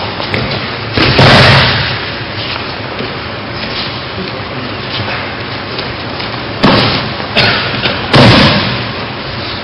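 A body thuds heavily onto a mat as someone is thrown.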